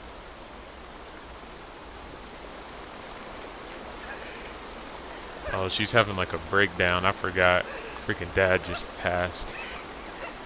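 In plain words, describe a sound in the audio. Water splashes steadily from a fountain nearby.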